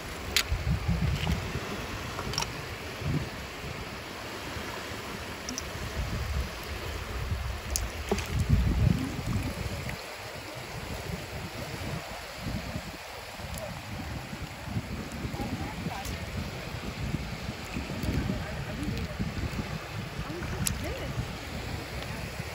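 Shallow water laps gently against a sandy shore.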